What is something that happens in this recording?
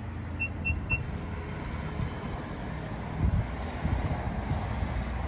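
A car's power tailgate hums open.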